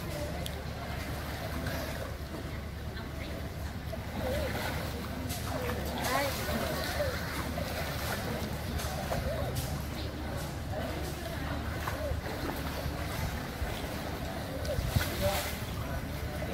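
Water splashes as children swim and kick.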